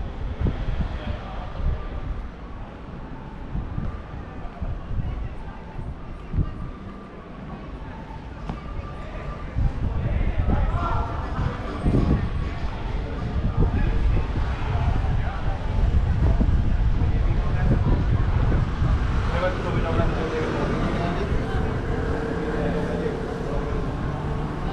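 Footsteps tap on paving outdoors.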